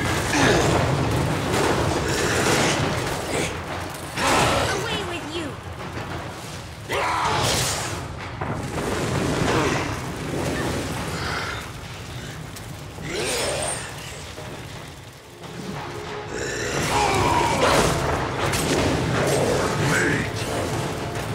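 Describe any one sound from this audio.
Weapons clash and strike loudly in a fight.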